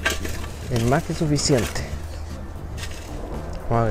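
A shovel scrapes and scoops loose mulch.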